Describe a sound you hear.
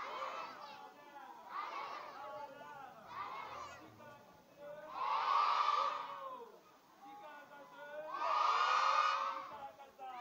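A large crowd of children sings and chants together outdoors.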